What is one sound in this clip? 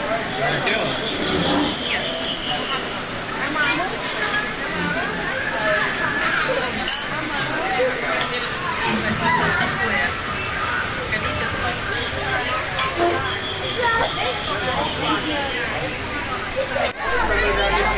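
A busy room murmurs with many voices.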